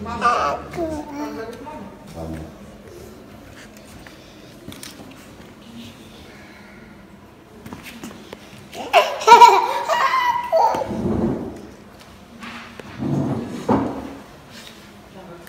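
A small child giggles and babbles nearby.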